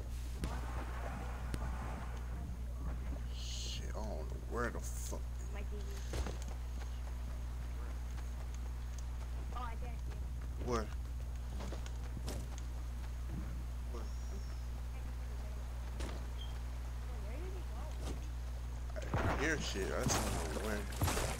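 Footsteps thud on wooden boards and then rustle through grass.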